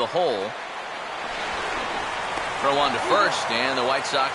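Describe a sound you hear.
A stadium crowd cheers and murmurs, growing louder.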